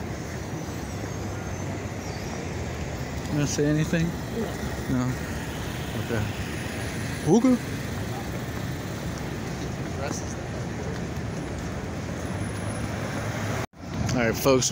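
Traffic rumbles along a busy street.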